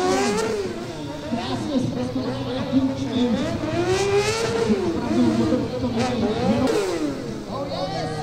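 A motorcycle engine revs up and down loudly, rising and falling in pitch.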